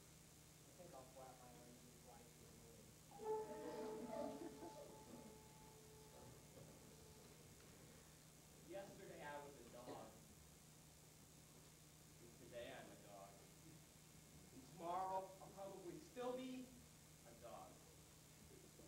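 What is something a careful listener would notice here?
A young man speaks on a stage, heard from a distance in a hall.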